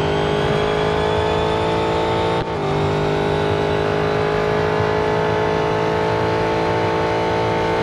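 A racing car engine roars steadily at high speed, its pitch climbing slowly.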